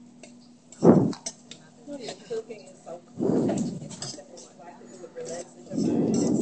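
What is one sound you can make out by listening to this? A metal spoon scrapes and clinks against a cooking pot.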